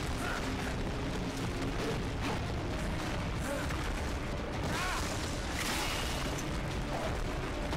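Rubble and debris crash down with a heavy rumble.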